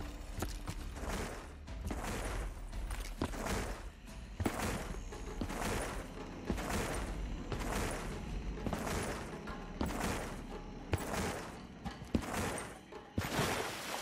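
Footsteps thud quickly and evenly on the ground.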